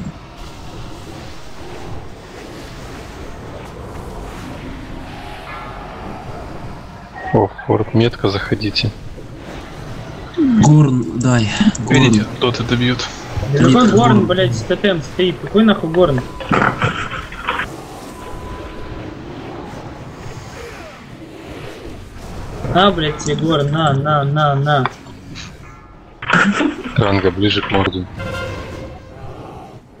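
Magic spells whoosh and crackle in a busy battle.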